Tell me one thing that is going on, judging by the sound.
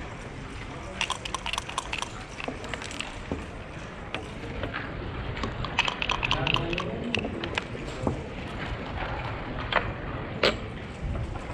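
Backgammon checkers click against each other as they are picked up and set down on a board.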